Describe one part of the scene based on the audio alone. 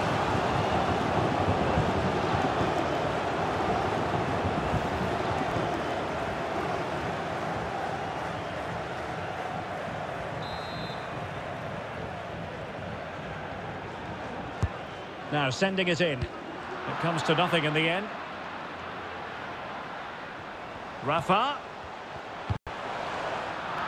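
A large stadium crowd roars and chants steadily, louder at first and then easing.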